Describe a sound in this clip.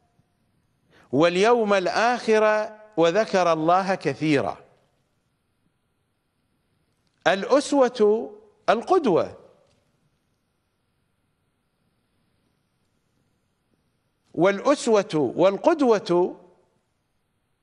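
A middle-aged man speaks with emphasis into a close microphone, pausing between phrases.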